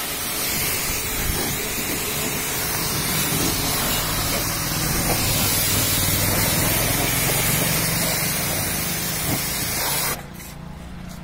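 A pressure washer jet hisses loudly and steadily against a vehicle, then stops abruptly.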